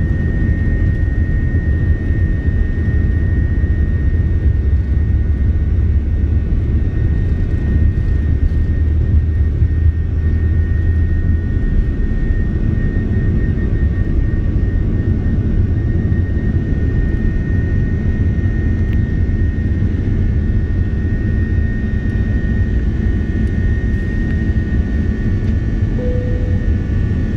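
A jet engine roars loudly with a steady high whine.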